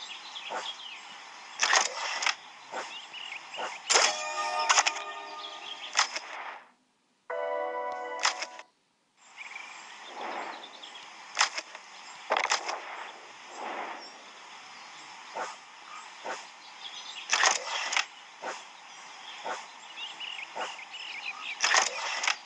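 Game pieces click sharply as they move across a board.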